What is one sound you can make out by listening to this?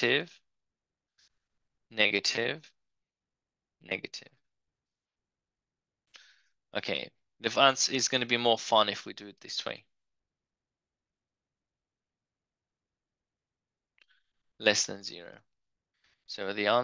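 A man speaks calmly and closely into a microphone, explaining in short bursts with pauses.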